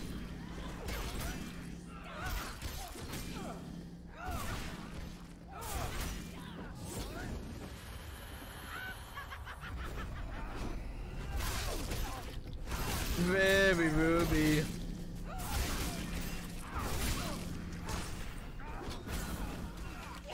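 A young man talks into a microphone with animation, close up.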